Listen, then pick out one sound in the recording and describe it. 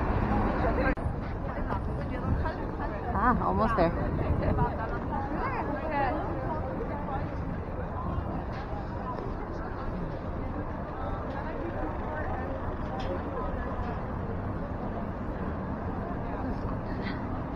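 Voices of a crowd of young men and women chatter and call out nearby.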